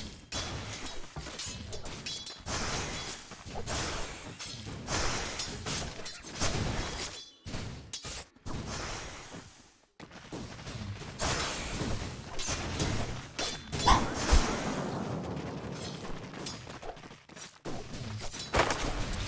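Game characters clash in battle, with spell effects crackling and bursting.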